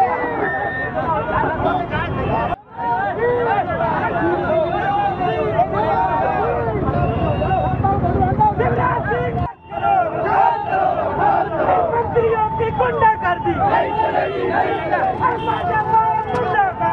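A crowd of men shouts and chants loudly outdoors.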